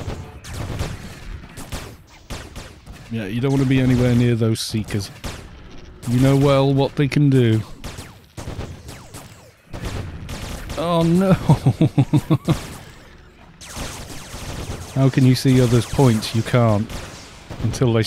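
Magic spell effects zap and crackle in a video game.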